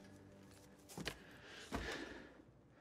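A man slams his hands down on a wooden desk with loud thuds.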